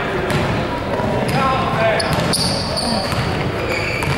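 A basketball bounces on the court as a player dribbles.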